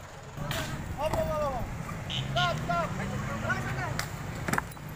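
Men talk loudly and excitedly nearby, outdoors.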